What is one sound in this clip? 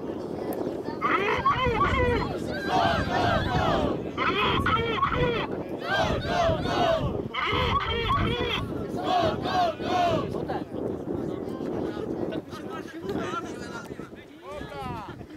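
Young men shout to each other across an open field at a distance.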